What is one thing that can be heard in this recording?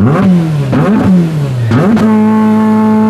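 A rally car engine revs hard in sharp bursts.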